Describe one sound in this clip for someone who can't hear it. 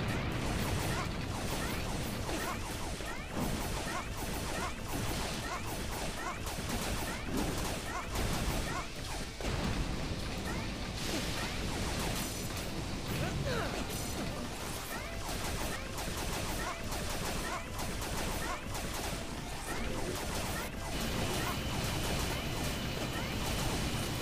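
Video game explosions boom.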